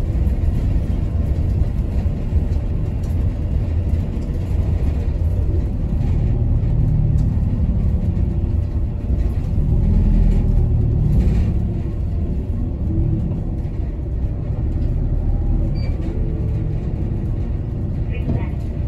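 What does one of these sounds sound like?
A vehicle's engine rumbles steadily from inside as it drives along.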